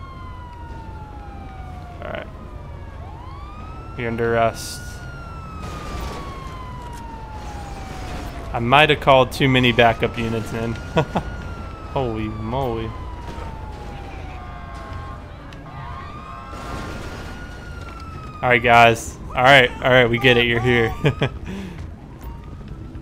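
A police siren wails nearby, rising and falling.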